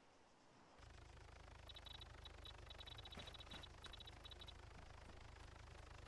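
Footsteps rustle through dry grass.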